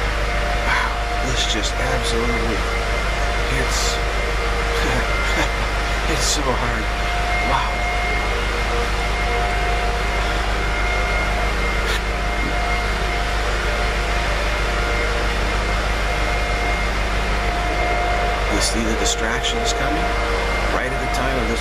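A middle-aged man speaks calmly close to a microphone.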